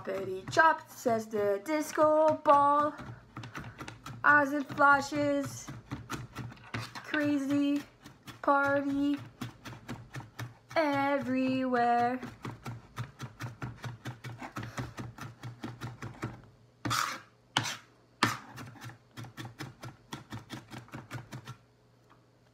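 A knife chops quickly on a cutting board.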